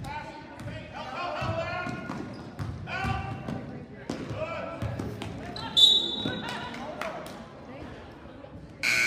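Players call out to one another.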